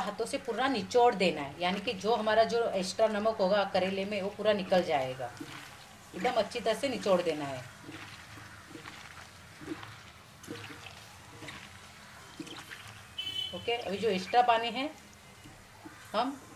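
Wet vegetable slices squelch and rustle as a hand squeezes them in a bowl.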